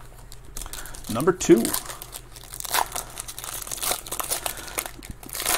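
A plastic wrapper crinkles and rustles as hands tear it open.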